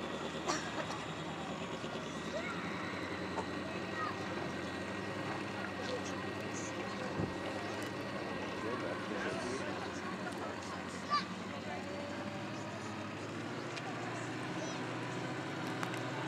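Water laps softly against a boat's hull.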